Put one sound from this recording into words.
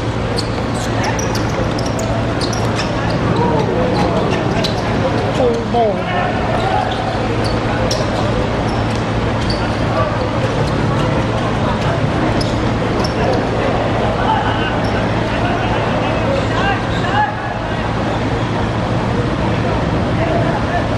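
A football is kicked on a hard outdoor court.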